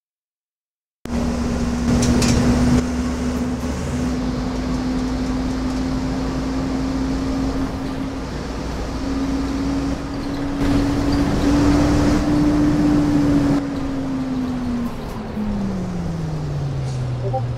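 A bus engine hums steadily, rising and then falling in pitch as it slows.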